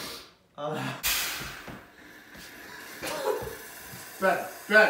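A soda maker hisses loudly as gas rushes into a bottle.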